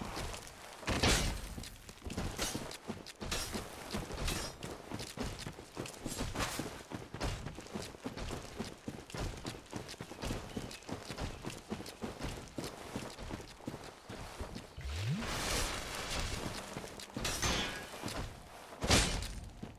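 A bowstring twangs as an arrow is loosed.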